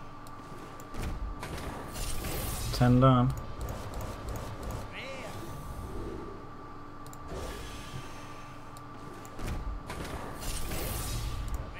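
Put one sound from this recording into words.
Magical whooshes and chimes sound as card packs burst open.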